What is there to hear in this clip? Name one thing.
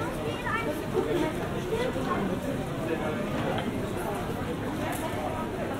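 A crowd of people chatter on a busy street outdoors.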